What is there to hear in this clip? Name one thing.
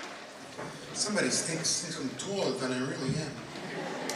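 A man speaks into a microphone through loudspeakers in a large hall.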